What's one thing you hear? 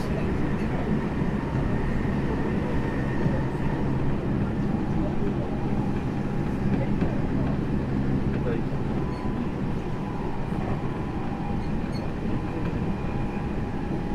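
An electric train's IGBT inverter motors whine with a steady tone over a low rumble.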